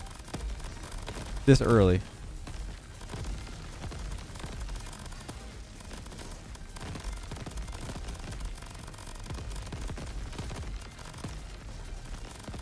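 Explosions boom and crackle again and again.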